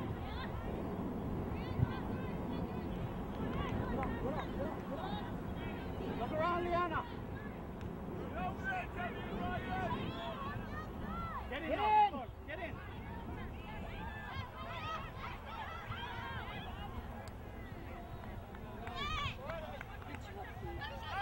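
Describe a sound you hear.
A crowd of spectators chatters outdoors at a distance.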